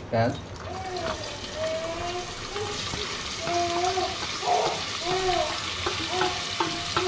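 Chopped onions patter into a metal pot.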